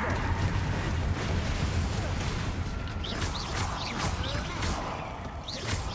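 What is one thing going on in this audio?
Magic spells crackle and zap in quick bursts.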